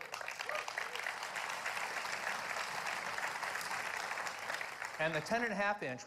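A large audience applauds in a big echoing hall.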